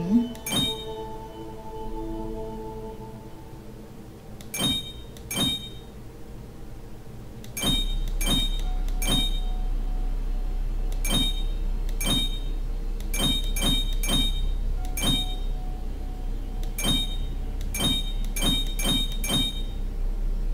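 Glassy game clicks chime each time a puzzle piece turns.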